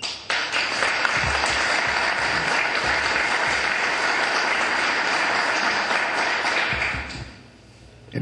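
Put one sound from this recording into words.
An audience claps steadily.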